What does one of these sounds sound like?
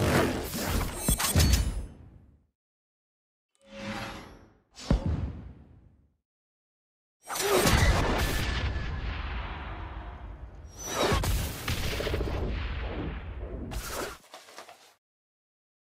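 Bright game reward chimes and whooshes play in bursts.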